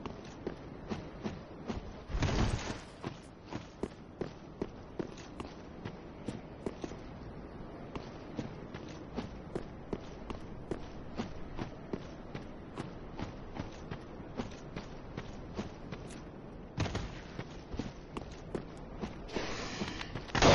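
Armored footsteps clank steadily on stone and grass.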